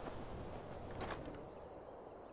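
A wooden chest creaks open.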